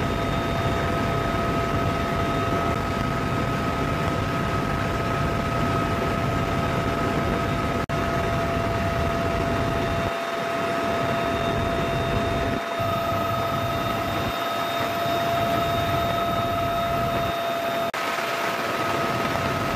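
A helicopter's engine and rotor roar loudly and steadily from inside the cabin.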